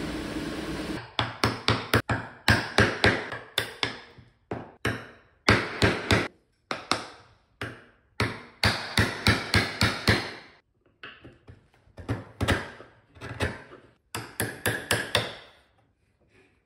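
A mallet strikes a chisel into wood in sharp, repeated knocks.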